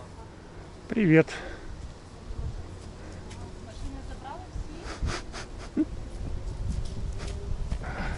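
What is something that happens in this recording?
A young child calls out nearby.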